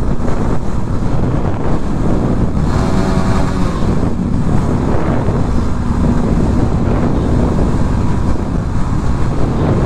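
A motorcycle engine roars and echoes inside a tunnel.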